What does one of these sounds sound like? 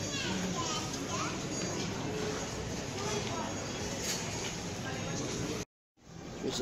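A crowd of shoppers murmurs and chatters in a large, echoing hall.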